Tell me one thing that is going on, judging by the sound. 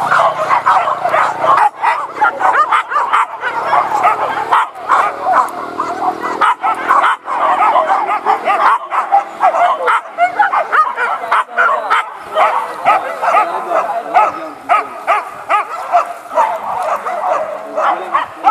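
Dogs bark excitedly outdoors.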